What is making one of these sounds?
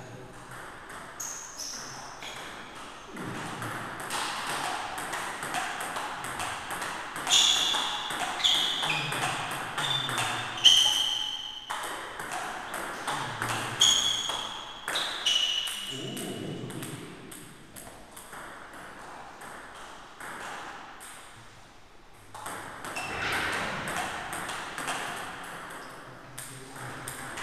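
A table tennis ball clicks back and forth between paddles and the table in a quick rally.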